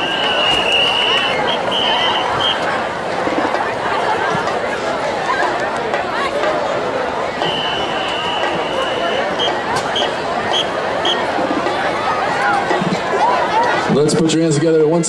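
A crowd murmurs and chatters in an open stadium.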